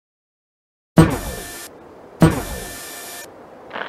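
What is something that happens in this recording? A laser gun hums and buzzes as it fires.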